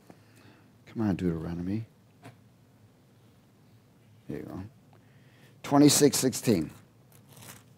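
A middle-aged man speaks slowly and calmly into a microphone.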